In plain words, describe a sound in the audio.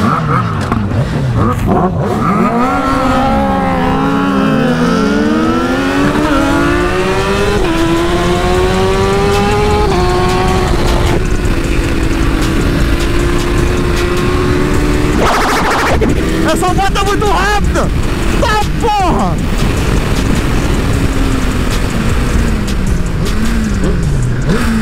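A motorcycle engine roars close by, revving up and down.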